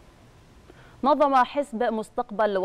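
A woman speaks clearly into a microphone, reading out.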